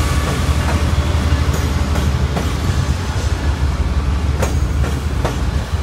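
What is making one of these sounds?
Diesel locomotives rumble loudly as they roll past close by.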